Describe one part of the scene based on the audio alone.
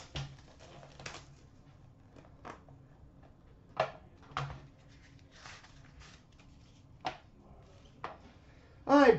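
Small cardboard boxes click and tap as they are opened and handled.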